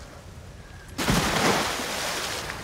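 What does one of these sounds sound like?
A splash sounds as someone dives into water.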